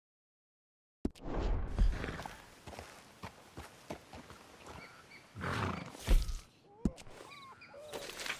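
Horse hooves clop steadily on a dirt path.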